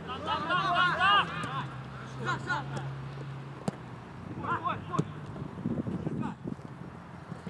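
Men shout to each other across an open field.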